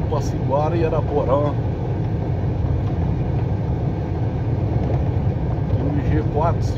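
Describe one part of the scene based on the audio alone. Tyres rumble over a rough road.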